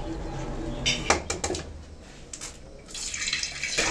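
An egg cracks against a pan.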